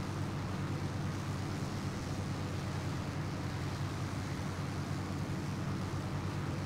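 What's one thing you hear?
Wind rushes past an aircraft in flight.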